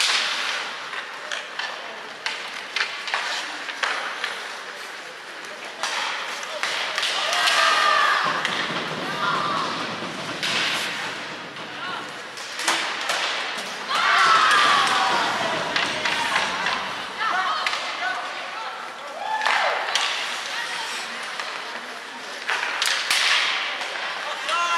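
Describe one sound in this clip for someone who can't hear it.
Skates scrape and hiss across the ice in a large echoing arena.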